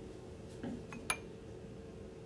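Glass clinks against glass.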